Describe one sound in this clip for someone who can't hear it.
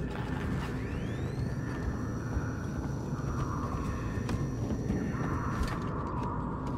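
A motion tracker emits high electronic beeps.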